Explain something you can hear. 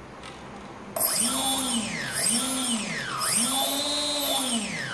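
An electric motor whines, its pitch rising and falling as it revs up and down.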